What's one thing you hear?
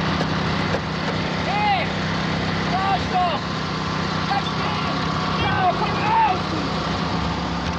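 A man shouts with strain outdoors in the wind.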